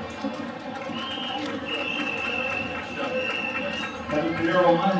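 A referee's whistle blows long and shrill.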